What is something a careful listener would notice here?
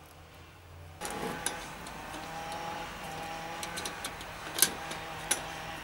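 Plastic parts click and knock as they are handled.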